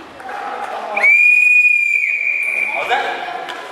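A referee's whistle blows one long blast.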